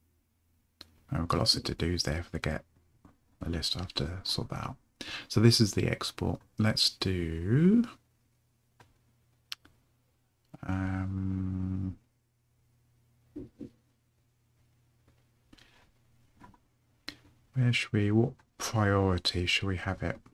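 A man speaks calmly and closely into a microphone, with pauses.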